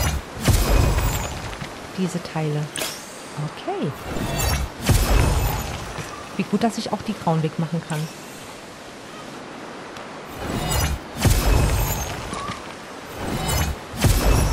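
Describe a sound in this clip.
Magic sparkles chime and shimmer in short bursts.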